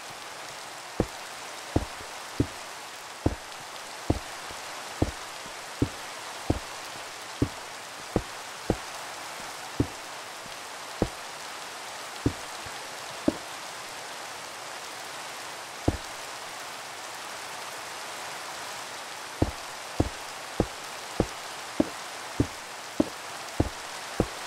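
Stone blocks are placed one after another with short, soft thuds.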